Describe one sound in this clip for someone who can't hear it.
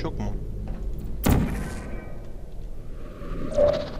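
A sci-fi gun fires with a sharp electric zap.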